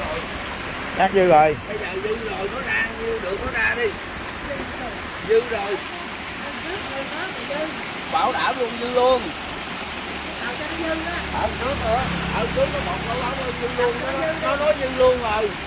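A middle-aged man talks close by with animation.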